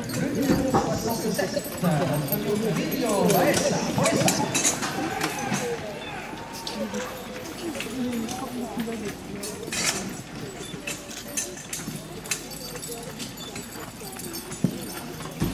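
Horses' hooves clop on gravel as a carriage passes.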